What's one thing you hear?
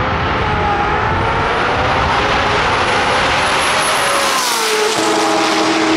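Sports car engines roar loudly as the cars race past at full throttle.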